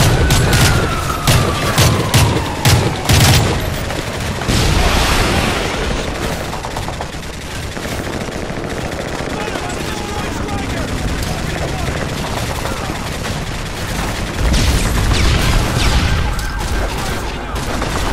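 A rocket whooshes past.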